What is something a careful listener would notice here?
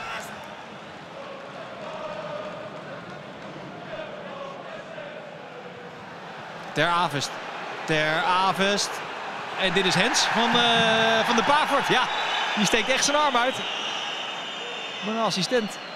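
A large stadium crowd murmurs and chants in the distance.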